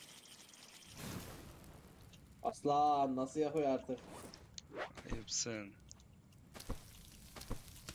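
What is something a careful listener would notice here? A campfire crackles and hisses.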